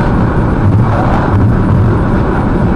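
A truck rushes past with a whoosh.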